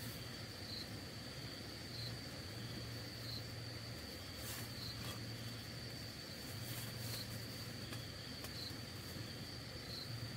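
Leaves rustle close by as a woman reaches into a fruit tree.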